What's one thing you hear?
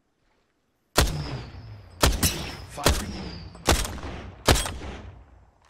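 A sniper rifle fires several shots in a video game.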